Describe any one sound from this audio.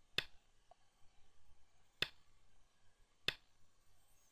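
A stone clicks sharply onto a game board.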